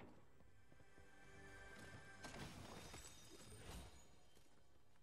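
A shimmering chime rings as a treasure chest opens.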